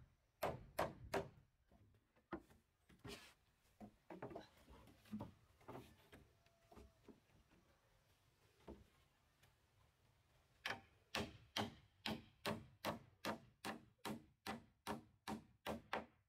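A hammer drives nails into a wooden floorboard.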